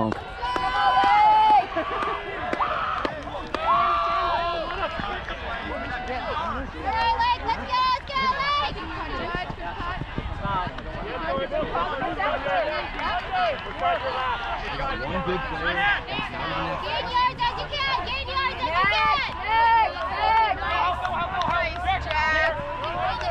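Young women shout and call out to each other across an open field outdoors.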